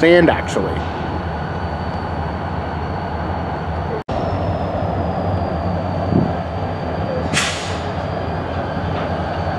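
Diesel locomotive engines rumble steadily close by.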